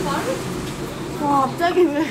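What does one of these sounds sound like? Young women chat nearby.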